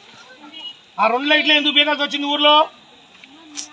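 A man shouts a slogan loudly outdoors.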